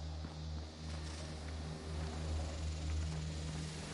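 Steam hisses softly nearby.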